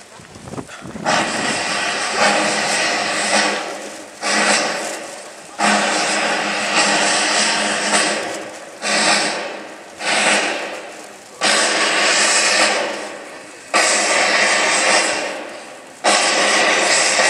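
A brass band plays outdoors.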